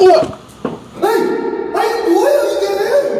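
A man exclaims loudly, close by.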